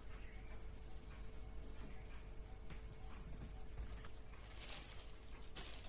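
Plastic wrap crinkles as it is handled.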